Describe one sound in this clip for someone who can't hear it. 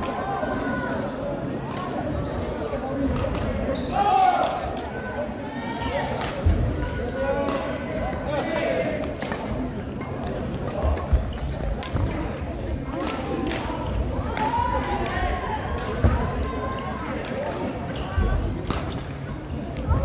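Women shout and call out during play.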